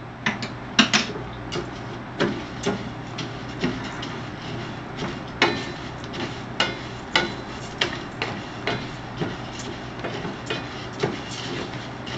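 A wooden spatula scrapes and taps against a metal pan.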